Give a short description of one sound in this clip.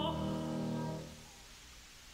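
A woman sings a long held note that soon breaks off.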